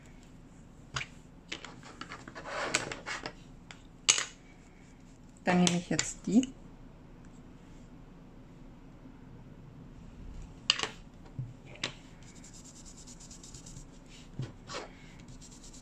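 A small plastic ink pad clicks and knocks on a table.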